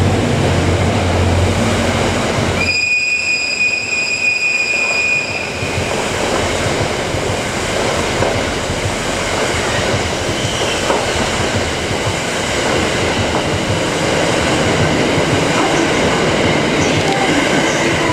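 A passing train rushes and rumbles loudly close by.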